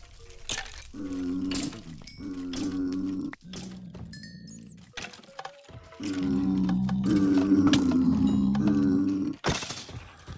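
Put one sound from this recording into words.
Villagers mumble with low, nasal grunts.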